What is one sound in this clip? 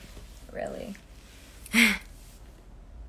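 A young woman makes brief sounds with her voice close by.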